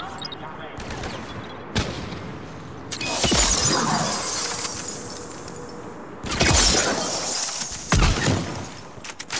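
Gunshots ring out in loud bursts with booming blasts.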